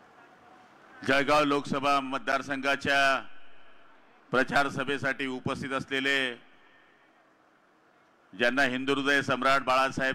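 A man speaks forcefully through a microphone and loudspeakers, in bursts with pauses.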